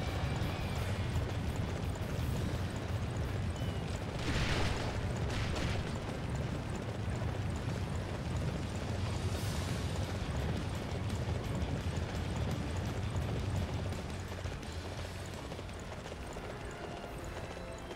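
A horse's hooves thud steadily on dirt as it trots.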